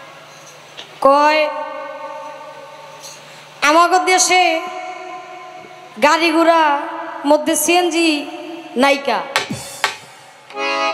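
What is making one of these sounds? A young woman sings into a microphone through loudspeakers, in long sustained phrases.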